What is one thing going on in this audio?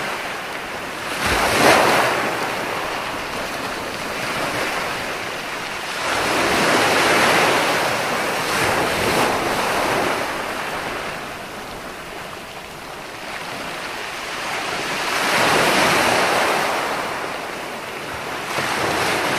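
Waves crash and roll onto the shore in repeated surges.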